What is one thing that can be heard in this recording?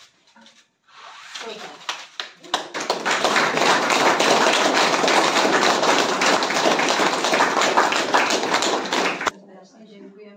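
A small crowd claps and cheers loudly.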